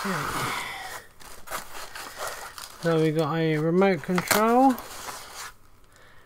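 Plastic wrapping crinkles as items are pulled from a box.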